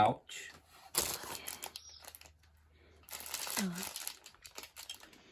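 A plastic wrapper crinkles in a hand.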